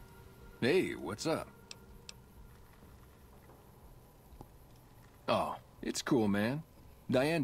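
A young man speaks casually and close by.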